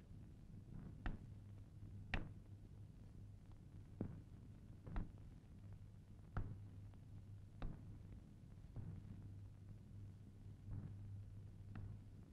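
A skipping rope slaps the ground at a steady pace.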